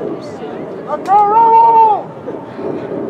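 A referee's whistle blows once sharply.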